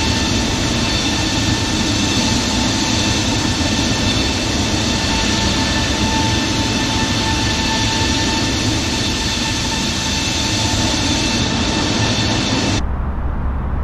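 Jet engines roar steadily with a high whine.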